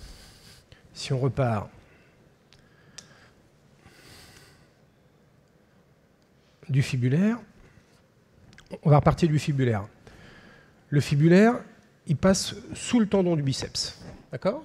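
A man speaks calmly through a microphone in a large hall, in short bursts.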